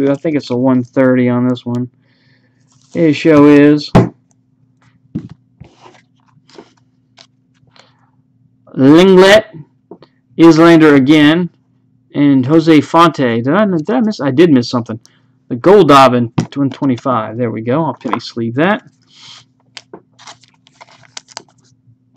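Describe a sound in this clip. Trading cards rustle and slide against one another in someone's hands.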